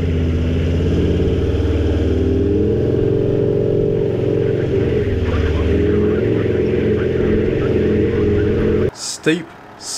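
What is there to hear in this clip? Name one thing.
Tyres crunch over soft sand.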